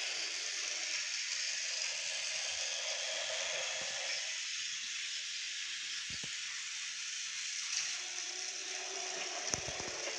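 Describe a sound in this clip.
A toy train whirs steadily along a plastic track.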